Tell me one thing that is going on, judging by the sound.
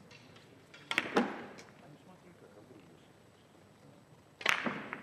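Billiard balls clack against each other and thud against the cushions.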